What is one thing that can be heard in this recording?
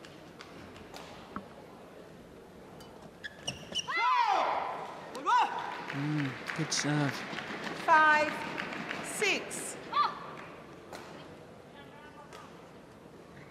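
A badminton racket strikes a shuttlecock with sharp pops.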